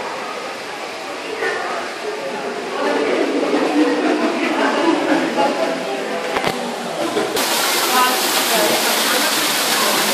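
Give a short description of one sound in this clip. A crowd of adults and children chatter nearby.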